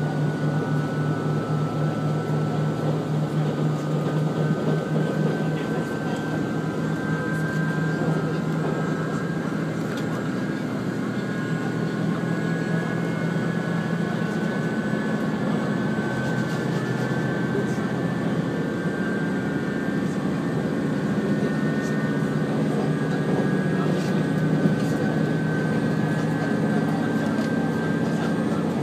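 A train hums and rumbles steadily along the tracks.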